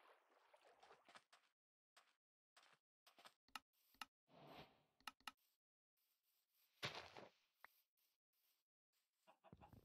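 Footsteps pad over grass.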